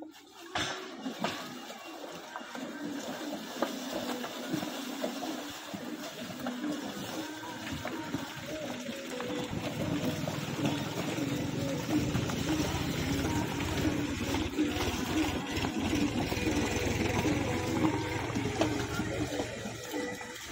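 Buffalo hooves thud and shuffle on dry dirt.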